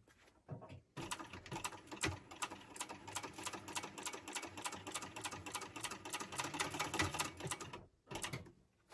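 A sewing machine stitches with a rapid, steady clatter.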